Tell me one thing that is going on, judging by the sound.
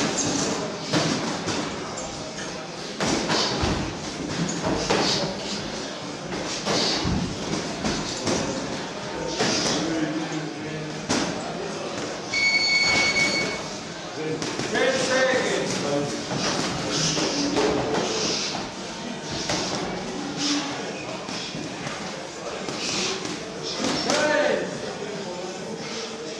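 Boxing gloves thump in sparring in a small echoing room.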